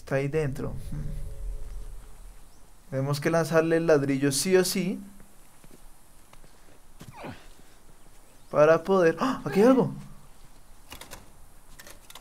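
Footsteps shuffle softly over concrete and grass.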